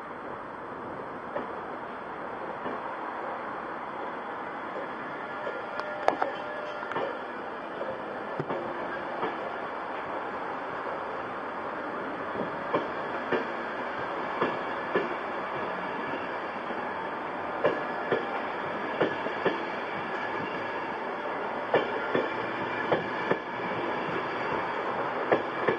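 A train rolls slowly past along the tracks with a steady rumble.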